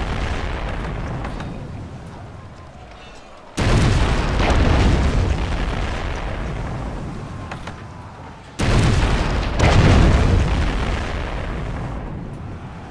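Cannons fire in deep, booming blasts that rumble away slowly.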